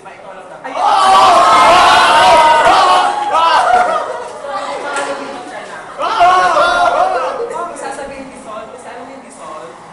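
Teenagers shout and cheer loudly close by.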